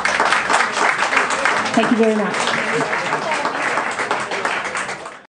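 A woman sings into a microphone.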